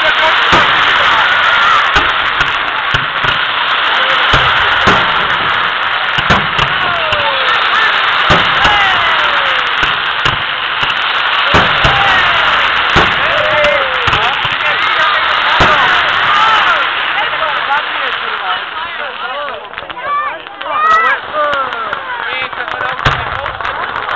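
Fireworks bang and boom overhead.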